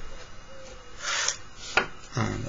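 A pencil scratches along a ruler on paper.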